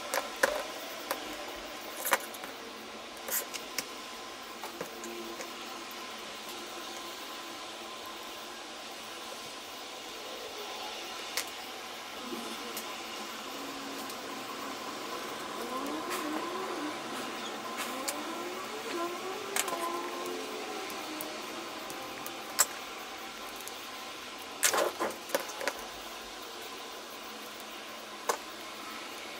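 Small plastic parts click and knock together.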